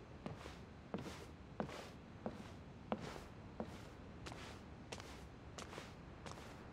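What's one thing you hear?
Footsteps tap on a hard floor at a walking pace.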